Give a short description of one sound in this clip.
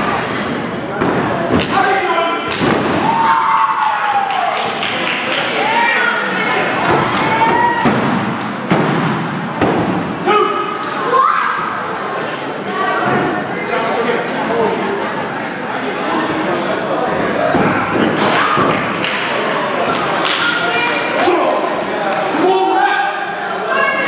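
A crowd in an echoing hall cheers and shouts.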